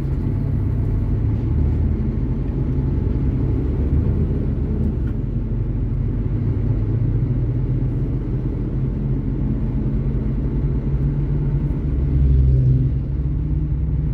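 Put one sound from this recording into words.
Oncoming trucks rush past close by.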